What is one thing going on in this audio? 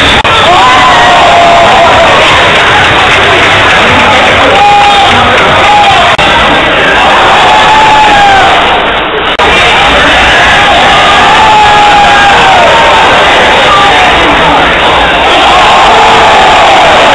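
A large crowd cheers and shouts loudly in a big echoing hall.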